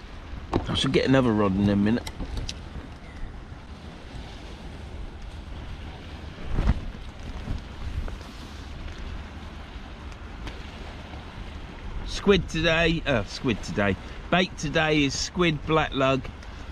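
Wind buffets the microphone outdoors with a low rumble.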